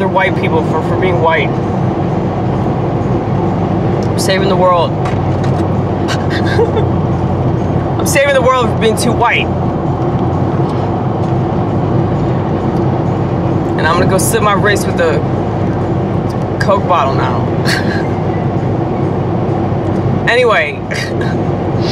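A car engine hums steadily inside a car.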